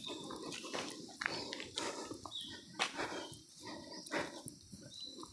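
Footsteps crunch on dry leaves along a path outdoors.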